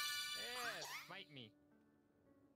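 A small cartoon creature chirps a high, squeaky cry.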